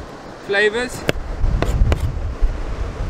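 A knife taps and chops sharply on a cutting board.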